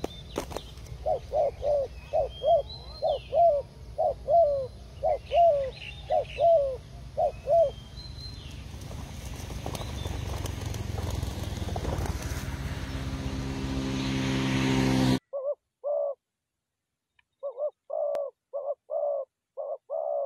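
A dove coos in low, repeated calls nearby.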